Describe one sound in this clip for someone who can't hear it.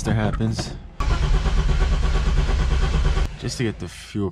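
A car engine cranks over.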